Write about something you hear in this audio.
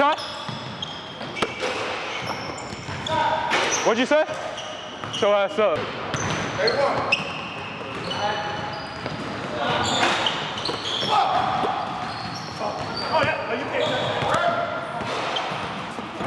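Sneakers squeak sharply on a hardwood floor in an echoing gym.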